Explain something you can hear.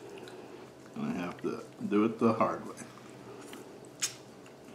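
A man slurps noodles.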